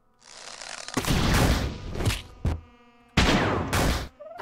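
A loud crunching explosion bursts and rumbles.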